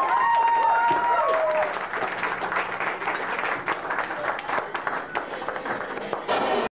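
A rock band plays loudly on stage.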